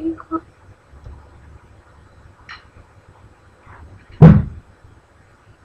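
A young girl speaks briefly nearby.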